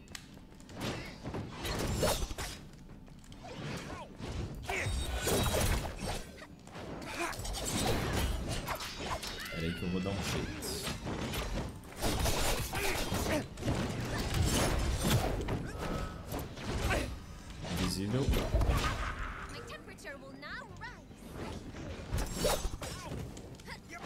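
Game sound effects of hits and blasts crackle and boom in quick bursts.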